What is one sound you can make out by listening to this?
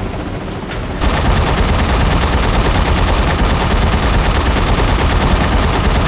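A heavy rotary machine gun fires in a rapid, steady stream.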